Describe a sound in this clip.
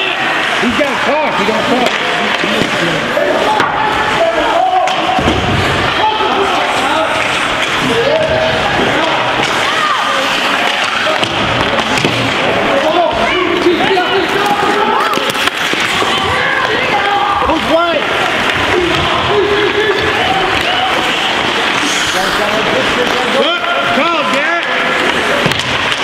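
A crowd of spectators chatters and shouts loudly nearby in an echoing rink.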